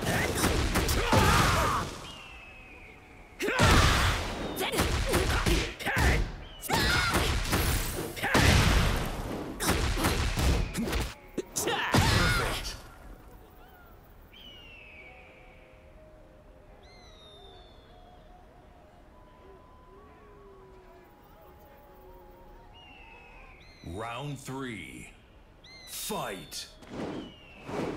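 Punches and kicks land with heavy impacts and whooshes.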